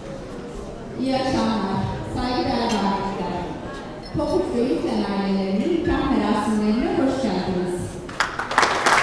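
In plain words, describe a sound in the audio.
A man sings into a microphone through loudspeakers in a large echoing hall.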